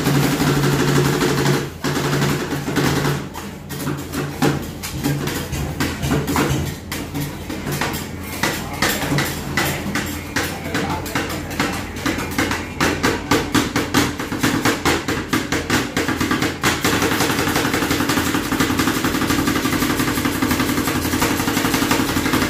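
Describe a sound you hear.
Metal spatulas scrape and tap rapidly on a cold metal plate.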